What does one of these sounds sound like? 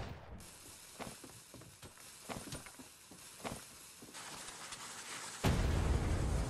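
Footsteps thud on the ground at a walking pace.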